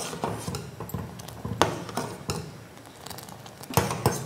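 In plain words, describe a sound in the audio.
Thick liquid pours and splashes into a pot.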